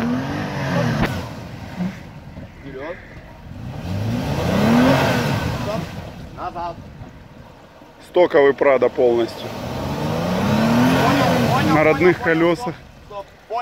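An SUV engine revs hard as it strains through deep mud.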